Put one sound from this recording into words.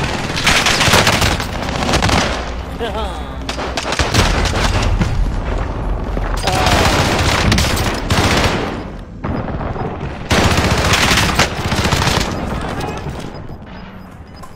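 Rapid gunfire crackles loudly in bursts.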